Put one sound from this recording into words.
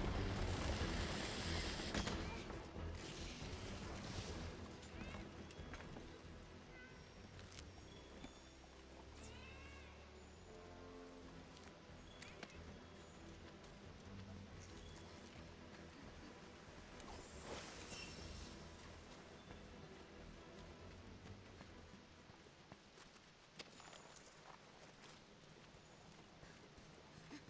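Magic sparks crackle and burst with a sharp whoosh.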